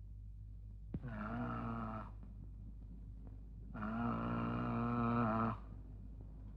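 A man moans and wails in grief.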